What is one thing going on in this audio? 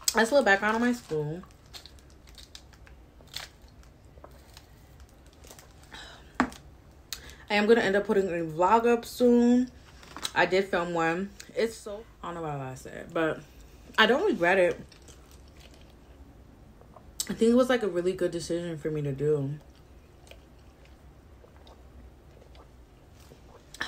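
A young woman sips a drink through a straw.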